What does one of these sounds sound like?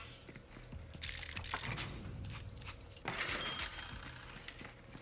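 Loot items clatter out of a chest.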